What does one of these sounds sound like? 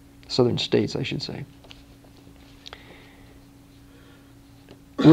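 A middle-aged man reads aloud calmly, close by.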